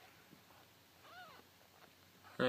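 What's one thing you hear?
A newborn kitten gives a faint, high mew.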